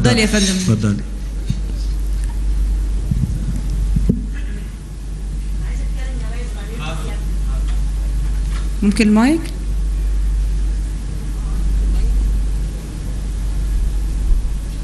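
A large crowd murmurs quietly in a big hall.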